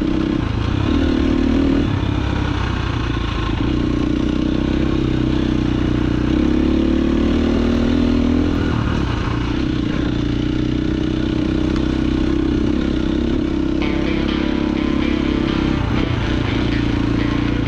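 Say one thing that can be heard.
A dirt bike engine revs and buzzes close by, rising and falling with the throttle.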